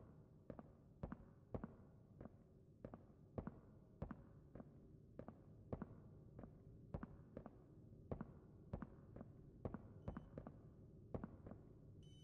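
Footsteps thud steadily on a hard floor at a walking pace.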